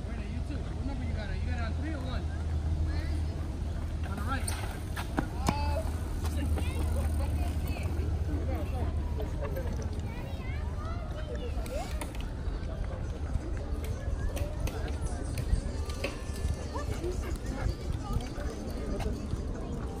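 Bicycles roll by on the pavement.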